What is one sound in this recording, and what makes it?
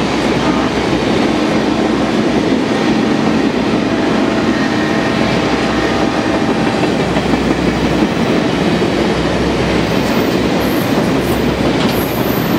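Passenger train cars rumble and clatter along the rails close by.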